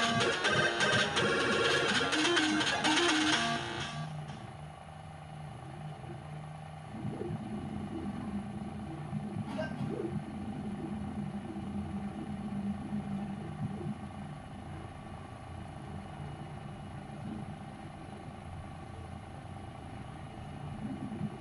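A computer hums steadily nearby.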